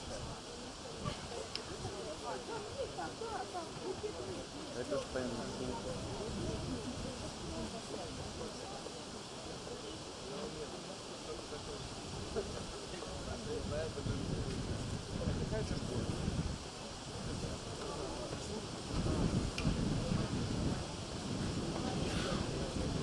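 Adults sing together in a group, heard outdoors.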